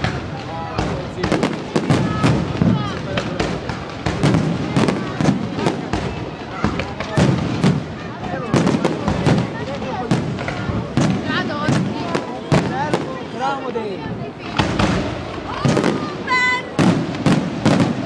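Fireworks burst with loud, rapid bangs and booms.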